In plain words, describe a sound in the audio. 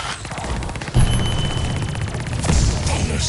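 A magical energy blast booms and crackles.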